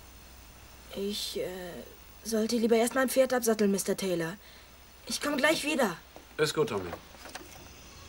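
A young boy speaks earnestly nearby.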